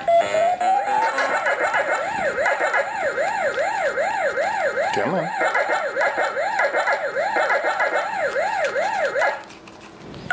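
An electronic tone warbles rapidly up and down.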